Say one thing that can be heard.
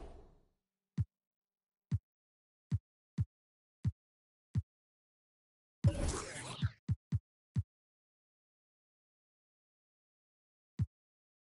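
Short soft clicks sound as menu options are selected.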